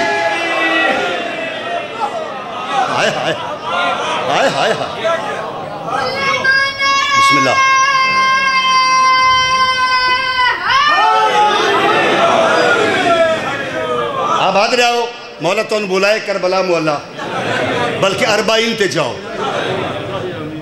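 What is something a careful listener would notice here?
A man chants loudly and with passion into a microphone.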